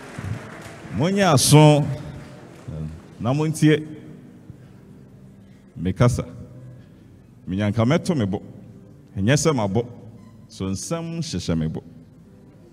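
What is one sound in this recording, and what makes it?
A young man speaks forcefully into a microphone in short bursts, echoing through a large hall.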